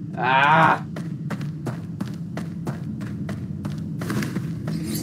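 Footsteps tread steadily on hard ground.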